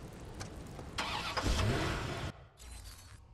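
A car engine starts with a roar.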